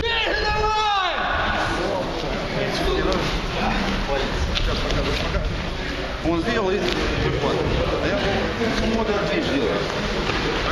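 Men scuffle and wrestle, with clothing rustling and bodies thudding.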